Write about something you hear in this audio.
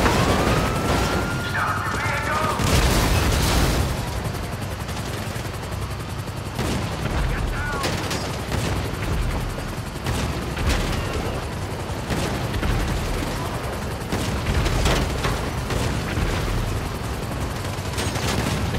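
A heavy tank engine rumbles steadily.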